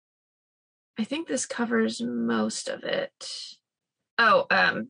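Another young woman speaks over an online call.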